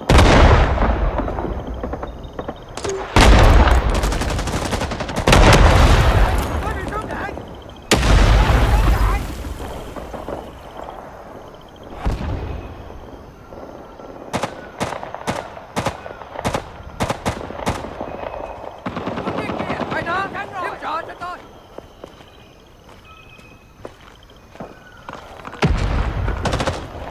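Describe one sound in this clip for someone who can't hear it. Footsteps run across dirt ground.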